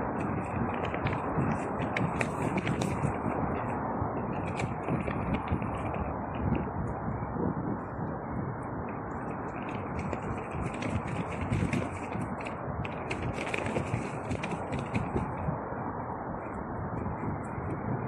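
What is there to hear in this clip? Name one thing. Loose nylon trousers rustle and flap in the wind.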